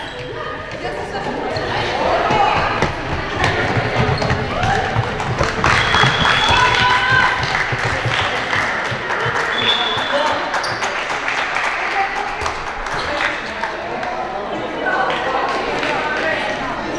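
Young girls shout and call out to each other in a large echoing hall.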